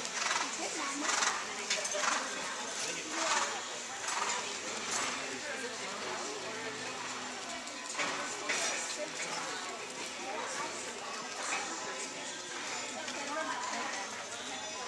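Men and women chatter nearby in a large echoing hall.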